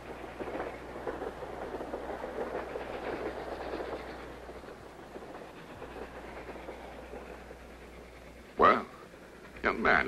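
A train carriage rumbles and rattles steadily.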